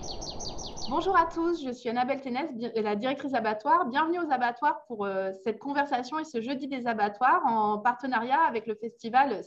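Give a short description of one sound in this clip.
A woman talks calmly through an online call.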